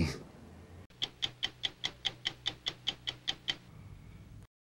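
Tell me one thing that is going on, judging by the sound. A stopwatch ticks steadily.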